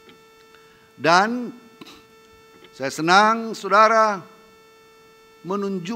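A man speaks slowly and formally into a microphone, heard through a loudspeaker.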